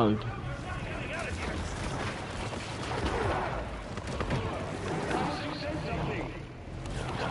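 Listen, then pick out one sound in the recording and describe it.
Heavy blows land with thuds in a fight.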